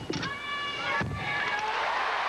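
A gymnast lands hard on a mat with a thud.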